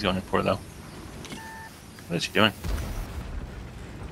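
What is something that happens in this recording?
A tank gun fires with a sharp boom.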